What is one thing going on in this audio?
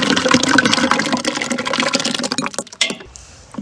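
Thick fruit pulp pours and splashes into a large metal pot.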